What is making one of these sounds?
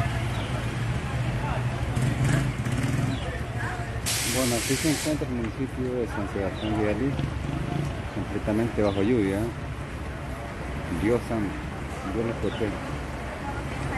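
Motorcycle engines putter past.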